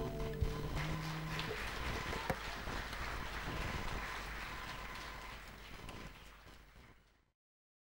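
An audience applauds in a large hall and slowly fades.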